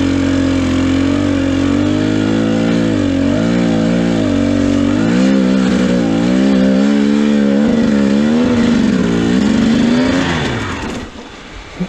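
A dirt bike engine idles close by, revving up and down, then dies away.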